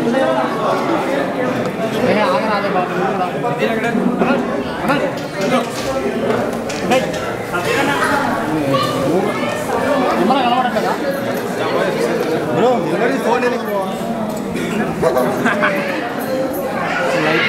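A crowd of men chatter loudly all around, close by.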